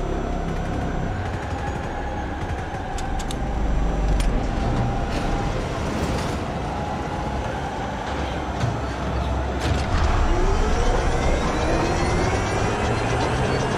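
Heavy truck engines roar and rumble across open ground.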